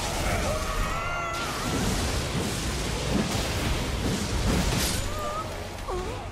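Lightning crackles and booms in bursts.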